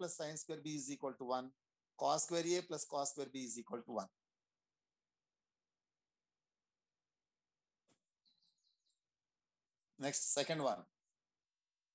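A man speaks calmly, as if teaching, heard through an online call.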